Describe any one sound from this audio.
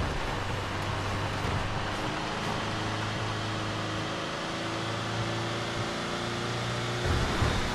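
Tyres crunch and rumble over a dirt road.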